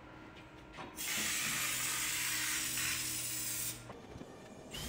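An aerosol can sprays with a steady hiss.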